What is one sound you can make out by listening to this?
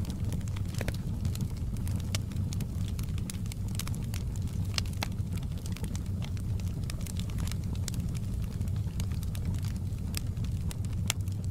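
A log fire roars with a low, steady rumble.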